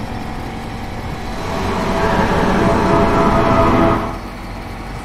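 A car engine's roar echoes loudly inside a tunnel.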